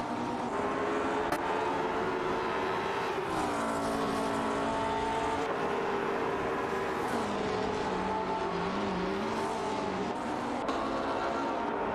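Other racing car engines whine past nearby.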